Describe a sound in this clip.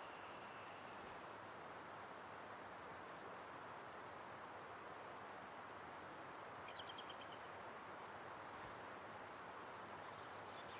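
Wind blows steadily through pine trees outdoors.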